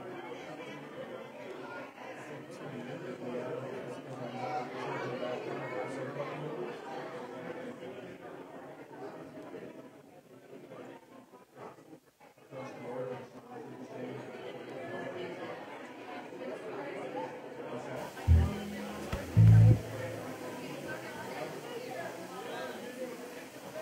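A small band plays a slow, gentle song in a large room.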